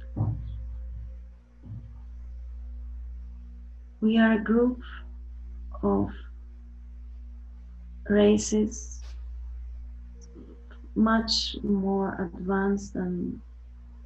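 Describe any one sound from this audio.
A young woman speaks softly and slowly over an online call, with long pauses.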